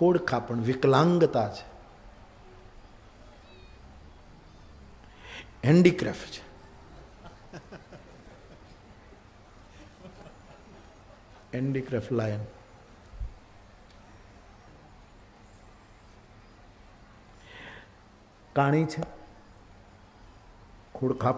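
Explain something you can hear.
An elderly man speaks with animation into a microphone, in short bursts with long pauses.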